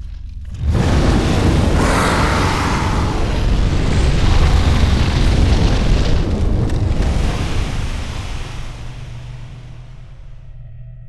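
A fiery explosion roars and rumbles, then slowly dies away.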